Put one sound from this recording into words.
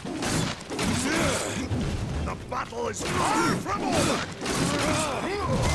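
Blades swish and clang in quick strikes.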